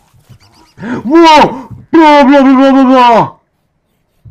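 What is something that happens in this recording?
A large beast lets out a low, groaning call.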